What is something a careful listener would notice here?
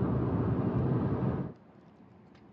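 Car tyres roar steadily on a highway.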